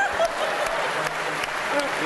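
A young man laughs heartily.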